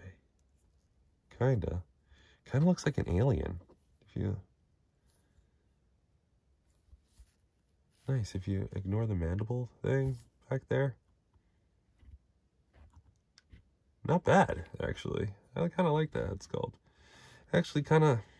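Small plastic parts click softly as an action figure is handled.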